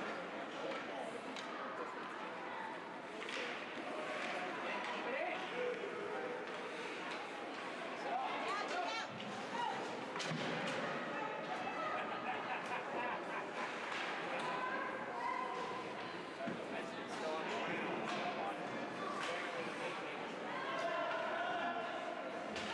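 A crowd of spectators chatters and cheers in a large echoing rink.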